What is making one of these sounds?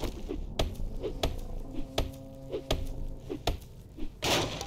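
A club repeatedly bashes a wooden crate with sharp thuds.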